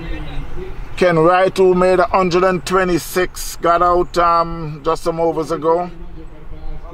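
A man calls out loudly nearby outdoors.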